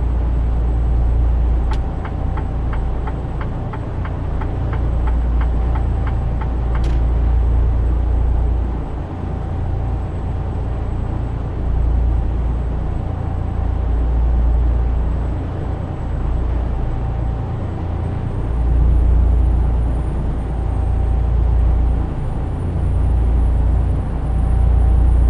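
A truck engine drones low and steady.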